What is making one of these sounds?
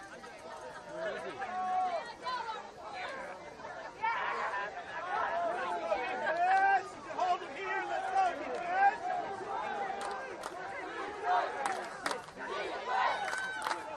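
Young men shout on a playing field.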